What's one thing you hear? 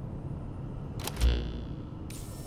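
A low electronic whoosh sounds as a game menu opens.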